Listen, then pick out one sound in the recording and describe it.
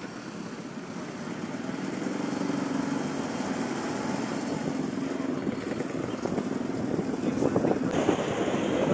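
Vehicle engines rumble steadily nearby outdoors.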